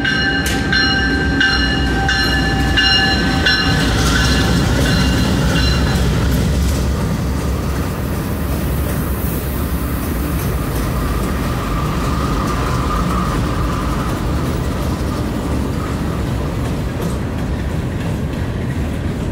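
Diesel-electric freight locomotives rumble as they pass close by.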